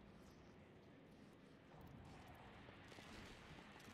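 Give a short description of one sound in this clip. A heavy wooden door rattles and creaks open.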